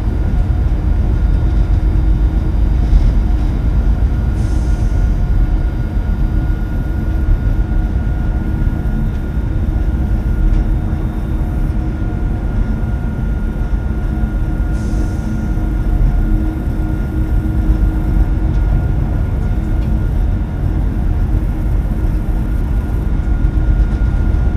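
A train rumbles steadily along the rails with a low drone.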